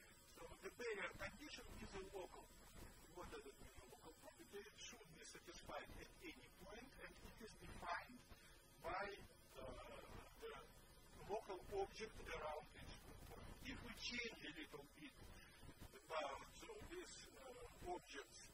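A man lectures calmly, heard through a microphone in a large room.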